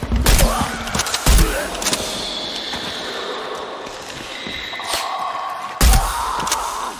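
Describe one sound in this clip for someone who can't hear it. Gunshots bang loudly with a short echo.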